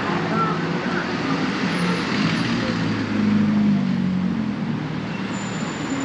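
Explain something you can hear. A trolley bus engine rumbles close by as it passes.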